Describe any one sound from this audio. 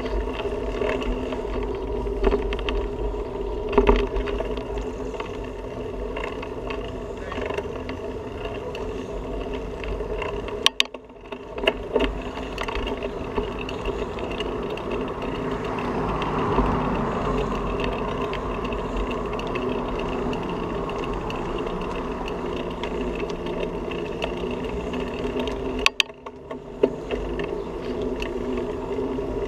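A bicycle rattles and hums steadily over pavement.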